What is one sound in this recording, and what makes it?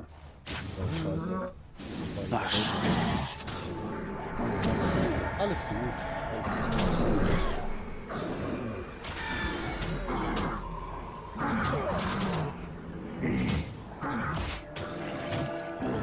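Spell effects and clashing fight sounds go on during a battle.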